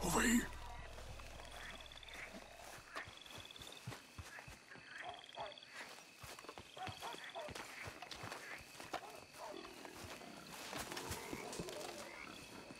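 Footsteps crunch slowly on gravel.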